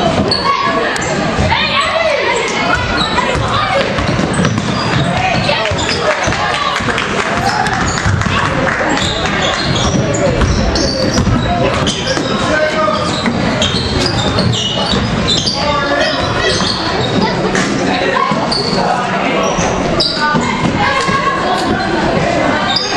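A crowd of spectators cheers and talks in an echoing gym.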